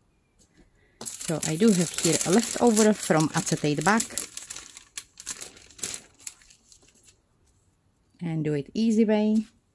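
Thin plastic film crinkles and rustles as hands handle it.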